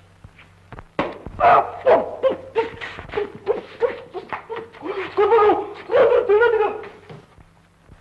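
A woman cries out loudly.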